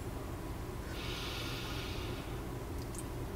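A woman breathes in slowly.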